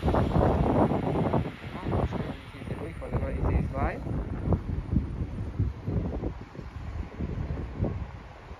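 Wind gusts outdoors, buffeting the microphone.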